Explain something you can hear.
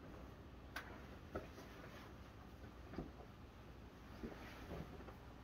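Fabric rustles as a jacket is put on.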